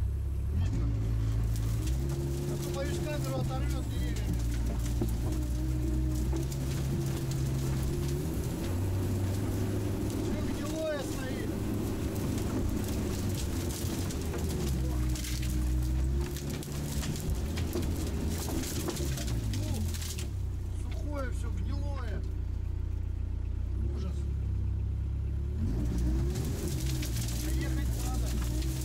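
A heavy vehicle engine rumbles and changes pitch as it drives.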